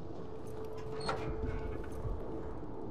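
A metal safe door clicks and swings open.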